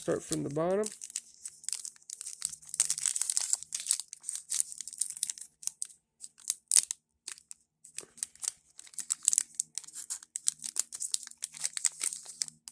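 Foil wrappers crinkle and rustle close by as hands tear open card packs.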